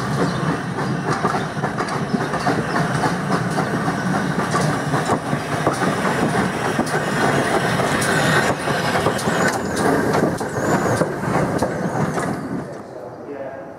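Train wheels clatter and squeal over the rails.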